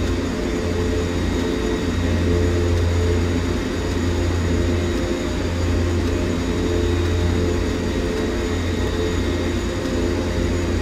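An aircraft engine hums with a steady low drone.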